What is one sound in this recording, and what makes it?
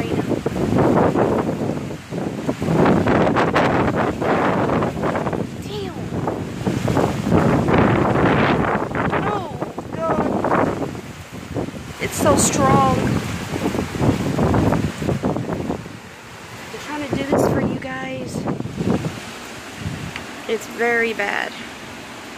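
Strong wind gusts and roars through trees.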